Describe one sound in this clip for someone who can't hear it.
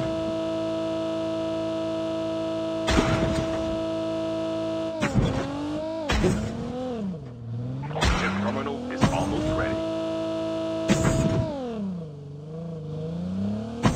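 A car engine hums steadily, then revs up and down.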